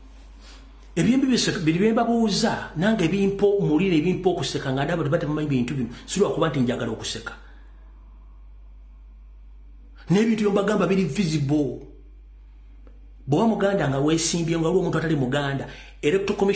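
A man speaks forcefully and with animation into a microphone, in bursts with pauses.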